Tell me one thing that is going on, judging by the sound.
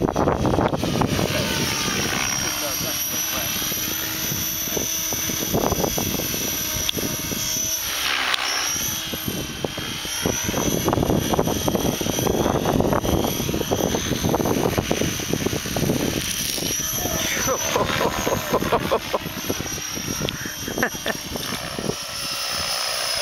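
A model helicopter's engine whines loudly, rising and falling in pitch as it swoops past.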